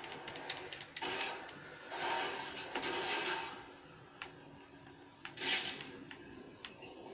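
Whooshing, roaring effects play from a television speaker.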